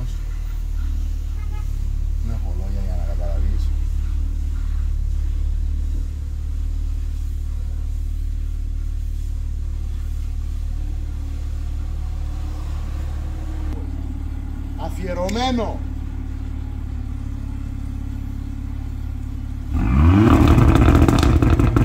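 A car engine hums steadily with a low rumble.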